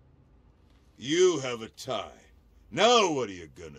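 An elderly man speaks gruffly and defiantly.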